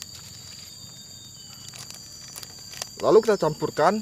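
Scissors snip open a plastic packet.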